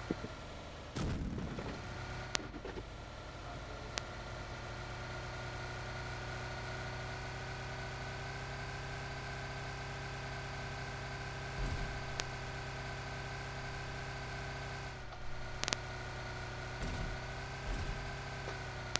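Tyres bump and thud over rough ground.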